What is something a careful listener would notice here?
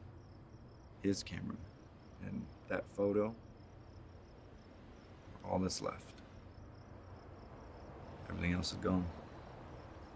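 A man speaks quietly and close by, in short bursts.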